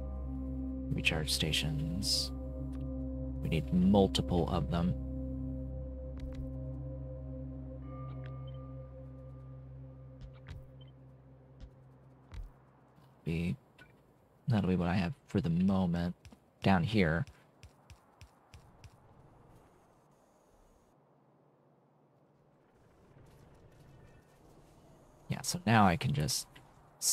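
A young man talks calmly into a close microphone in short bursts.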